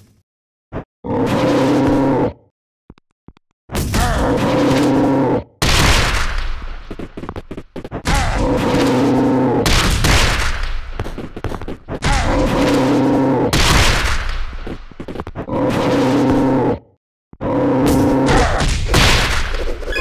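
A monster lets out deep, growling roars again and again.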